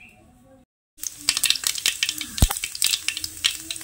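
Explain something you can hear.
Oil sizzles and crackles in a frying pan.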